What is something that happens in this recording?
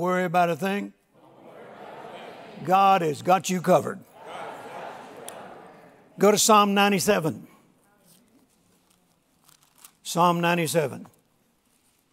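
An elderly man speaks slowly and with emphasis through a microphone in a large room.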